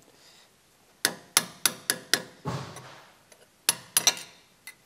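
A ratchet clicks rapidly as it turns a bolt.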